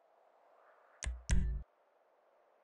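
A short electronic beep sounds twice as a menu choice is made.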